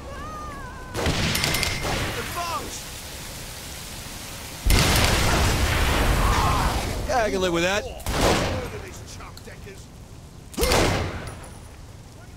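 Gunshots crack loudly.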